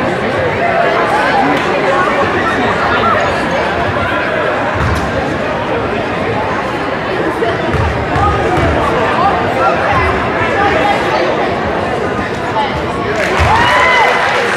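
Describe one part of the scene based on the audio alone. A basketball bounces with dull thuds on a wooden floor.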